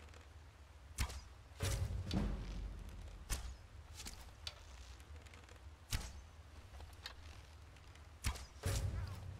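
A bow string twangs as arrows are shot.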